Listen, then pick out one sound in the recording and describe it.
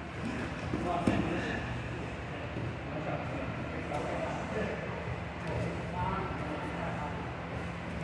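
A man talks quietly nearby in a large echoing room.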